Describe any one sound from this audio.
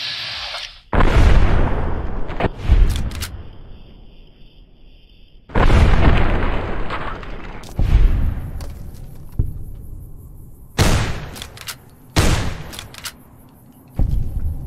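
A rifle fires loud shots, each echoing and rolling away across open ground.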